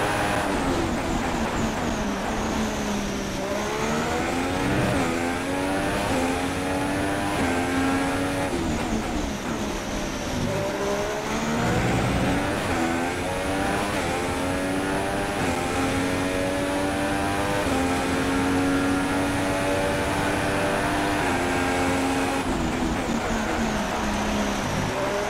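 A Formula One car engine screams at high revs, rising and dropping in pitch with each gear change.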